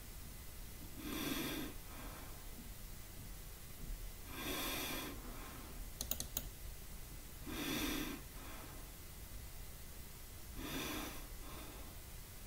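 A man speaks briefly in short bursts, close to a microphone.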